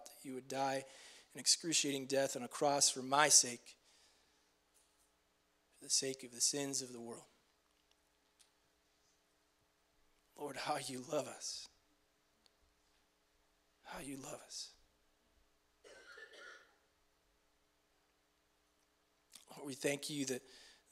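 A young man speaks softly into a microphone, in short phrases with pauses.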